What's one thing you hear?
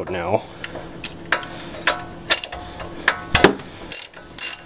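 Metal parts clink and knock together.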